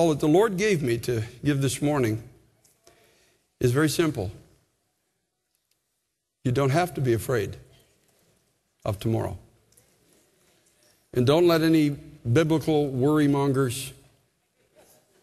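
A man speaks with emphasis through a microphone in a large echoing hall, with pauses.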